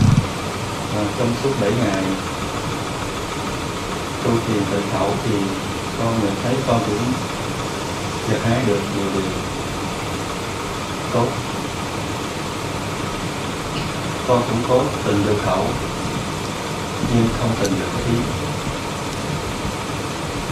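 A young man speaks calmly into a microphone over a loudspeaker, with pauses, in an echoing hall.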